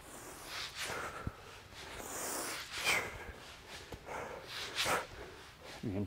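A heavy weight whooshes through the air.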